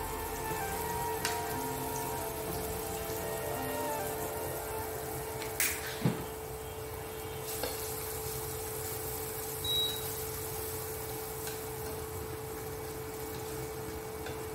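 Onions sizzle steadily in a hot frying pan.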